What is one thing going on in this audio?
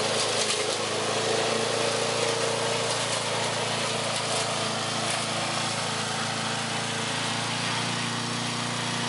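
A lawn mower engine drones steadily in the distance.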